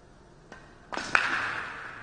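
A cue strikes a ball sharply.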